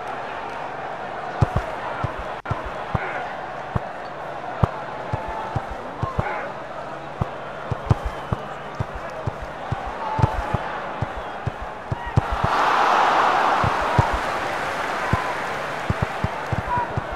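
A stadium crowd murmurs steadily throughout.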